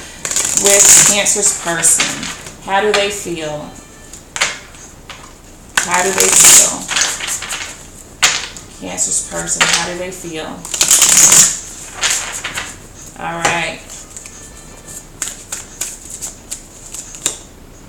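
Playing cards riffle and rustle as they are shuffled by hand.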